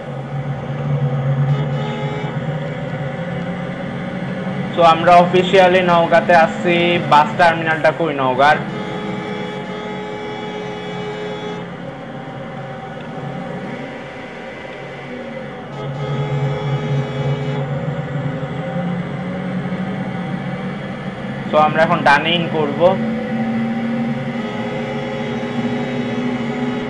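A bus engine drones steadily as it drives along a road.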